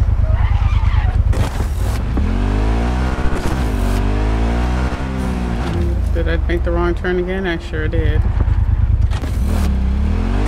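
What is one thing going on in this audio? A motorcycle engine rumbles and revs, rising and falling in pitch.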